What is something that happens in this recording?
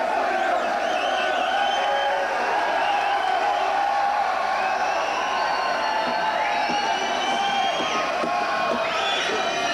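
An electric guitar plays through loudspeakers in a large echoing hall.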